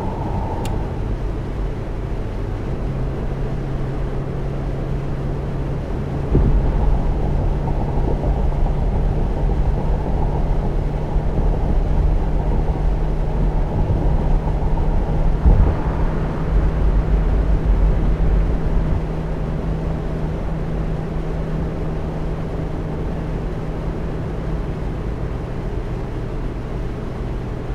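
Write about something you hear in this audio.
A bus engine hums steadily with a low drone.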